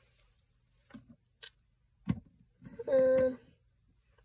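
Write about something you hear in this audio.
Plastic toy figures clack softly as a hand moves them.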